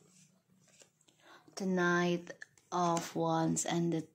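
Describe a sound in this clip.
Playing cards are laid down on a table with soft taps.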